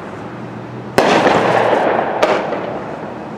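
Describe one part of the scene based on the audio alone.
A firework bursts with a loud bang outdoors.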